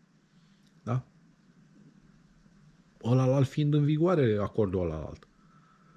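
A middle-aged man speaks calmly, close to a microphone.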